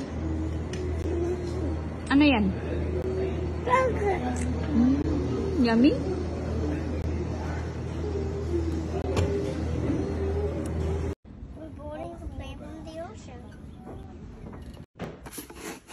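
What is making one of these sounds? A young child talks in a small voice close by.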